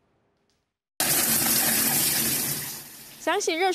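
Water sprays hard from a shower head.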